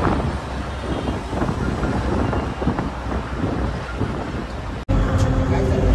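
A bus engine rumbles with road noise as the bus drives along.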